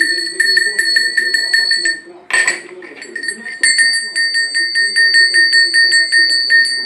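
A metal bell clangs rapidly and rings close by.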